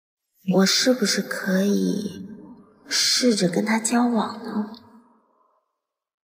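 A young woman speaks softly and thoughtfully, close by.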